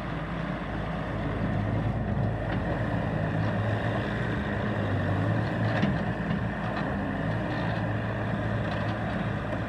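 A skid steer loader's tyres crunch over gravel.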